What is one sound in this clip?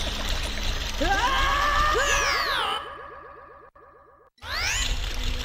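A shimmering magical chime sweeps up and fades.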